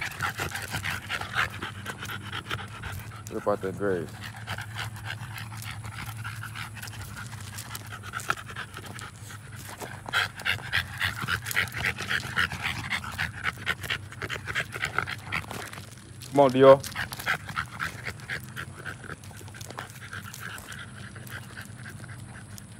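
Paws crunch and scuff on loose gravel.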